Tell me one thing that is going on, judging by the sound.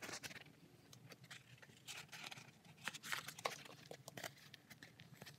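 Stiff card rubs and scrapes as hands handle it.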